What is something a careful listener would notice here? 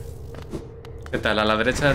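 A short whoosh sounds as a game character dashes.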